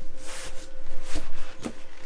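A hand presses and rubs a vinyl cushion, making it creak and rustle.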